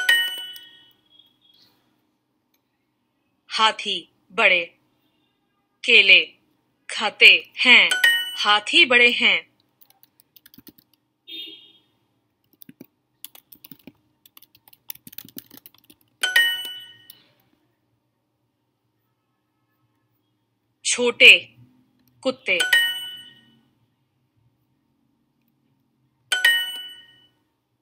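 A short bright chime rings several times.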